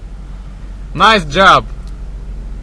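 A young man shouts loudly nearby.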